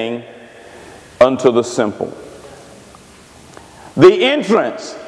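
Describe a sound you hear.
A middle-aged man preaches with animation through a microphone in an echoing hall, speaking in short bursts with pauses.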